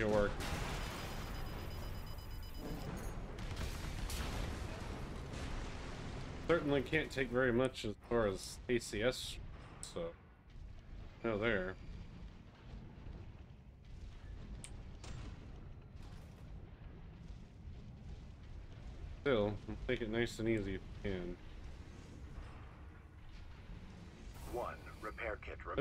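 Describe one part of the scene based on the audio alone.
Engines roar and whoosh in a video game.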